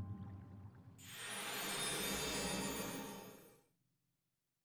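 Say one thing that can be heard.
A bright, glittering shimmer swells and then fades away.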